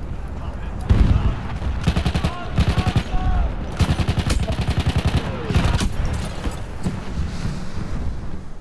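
Rapid gunfire rattles in bursts close by.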